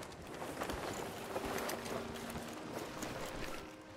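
A canvas sail flaps and creaks in the wind.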